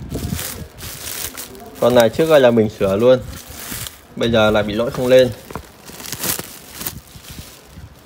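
Plastic wrap crinkles and rustles as it is handled.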